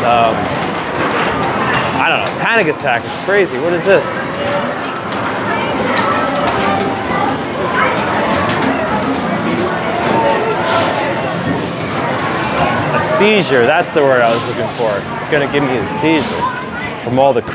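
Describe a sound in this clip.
Arcade machines chime and jingle.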